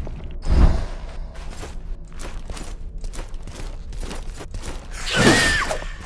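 Armored footsteps clink on stone.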